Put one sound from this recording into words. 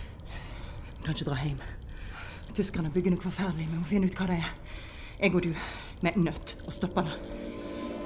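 A woman speaks quietly and earnestly, close by.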